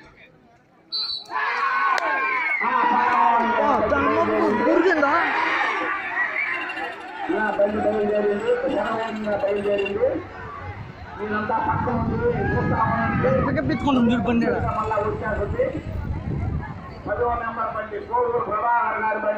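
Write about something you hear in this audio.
Men talk loudly and excitedly close by.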